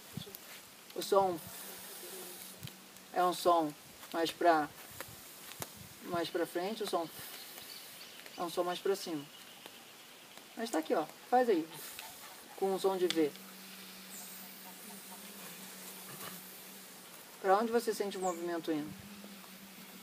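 A young man speaks calmly and thoughtfully close by, with pauses.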